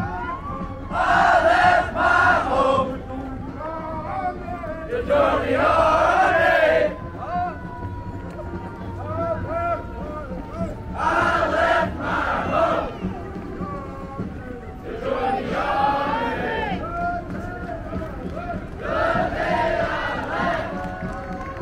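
A group of marching young people chant loudly in unison.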